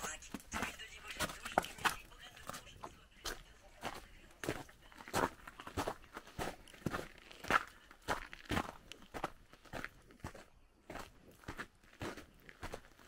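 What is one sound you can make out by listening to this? Footsteps crunch on snow at a steady walking pace.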